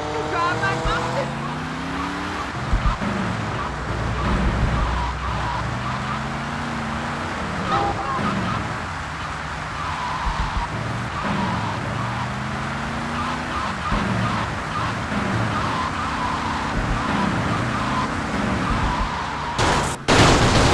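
A car engine revs and hums, rising in pitch as it speeds up.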